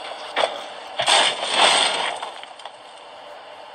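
Metal scaffolding clatters and collapses.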